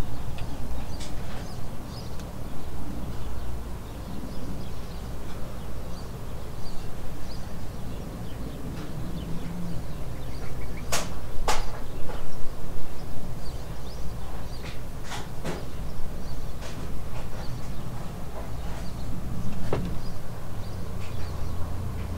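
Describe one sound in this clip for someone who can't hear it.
A small engine runs with a steady low rumble close by.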